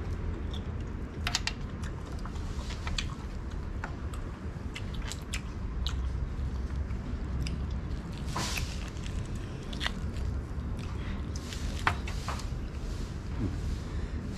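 A man tears cooked meat apart with his hands, with wet ripping sounds.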